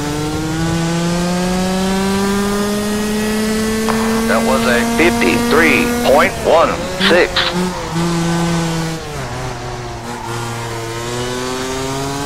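A kart engine hums steadily, rising in pitch as it speeds up, then drops as it slows.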